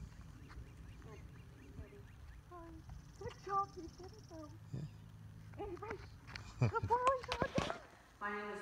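A woman talks to a dog in a high, encouraging voice.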